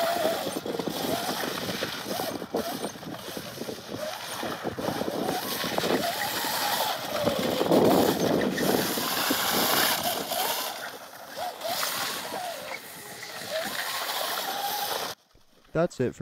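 A small kart engine buzzes and whines, rising and falling in pitch as it revs.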